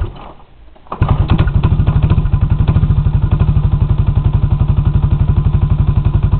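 A small engine starts and idles with a steady, rapid putter.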